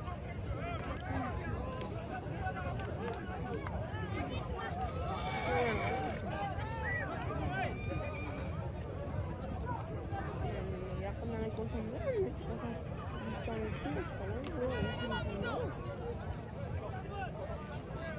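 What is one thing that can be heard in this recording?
Horses trample on dirt ground.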